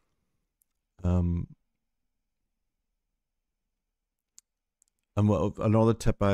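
A middle-aged man speaks calmly and thoughtfully into a close microphone.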